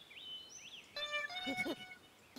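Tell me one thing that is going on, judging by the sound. A cartoon monkey chatters in a high voice.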